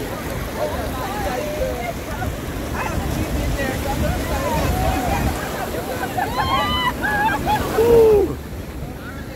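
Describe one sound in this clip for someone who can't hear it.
Young women shout and laugh excitedly close by, outdoors.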